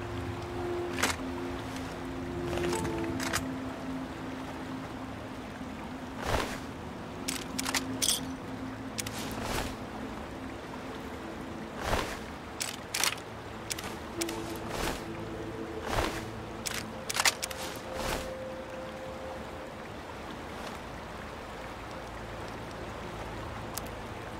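Short electronic clicks and beeps sound now and then.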